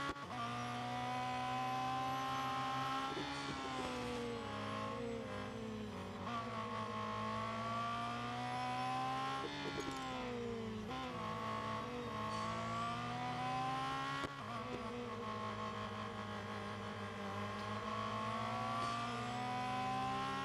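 A racing car engine roars loudly, its pitch rising and falling as it shifts gears.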